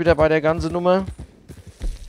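A horse's hooves clop slowly on a dirt path.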